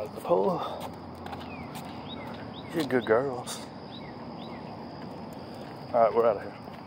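A dog's paws patter on pavement.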